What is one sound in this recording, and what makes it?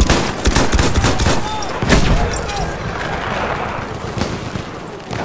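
Gunfire and explosions boom and crack nearby.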